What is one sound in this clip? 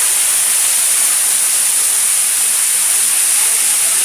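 Water sprays and splashes loudly.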